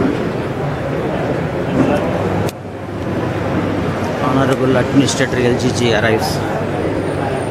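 A crowd of men murmurs and chatters nearby outdoors.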